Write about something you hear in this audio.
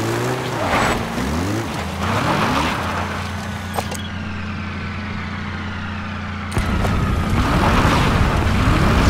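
A jeep engine revs and strains over rough ground.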